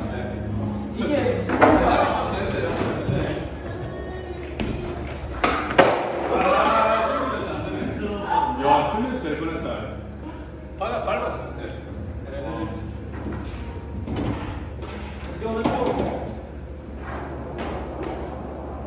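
Young men talk indoors.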